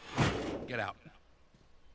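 A man says something gruffly and curtly.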